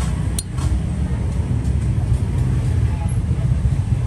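A metal lighter's insert scrapes as it slides out of the case.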